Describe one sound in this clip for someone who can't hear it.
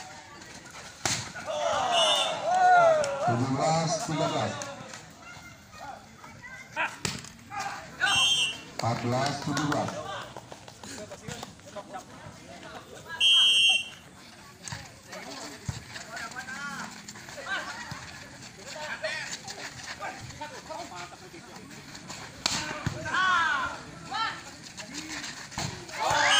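A ball is struck hard with sharp slaps.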